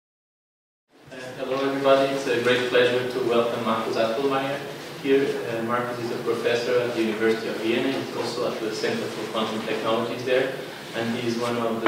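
A man speaks calmly to an audience in a room with a slight echo, heard through a microphone.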